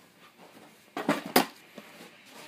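A skateboard knocks against the floor.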